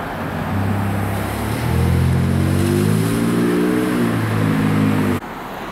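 Waves wash and break against the shore below.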